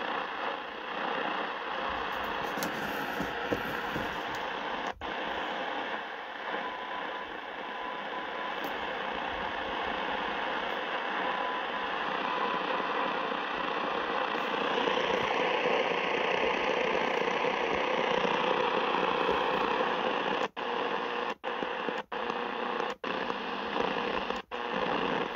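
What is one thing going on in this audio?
A radio gives out a steady rush of static.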